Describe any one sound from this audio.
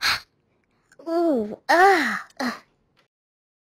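A cartoon cat yawns with a high sliding voice.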